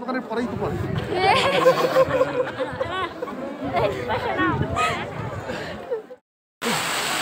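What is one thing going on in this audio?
A large crowd chatters outdoors, with many voices talking at once.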